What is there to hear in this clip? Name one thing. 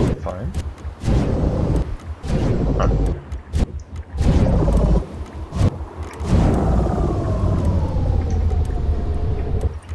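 A jet thruster roars in bursts.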